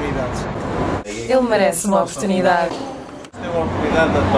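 Two young women talk and laugh up close.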